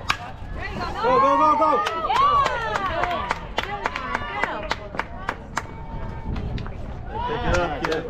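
Young women cheer and shout loudly outdoors.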